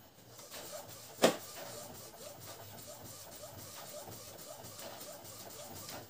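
A printer's mechanism whirs and clicks.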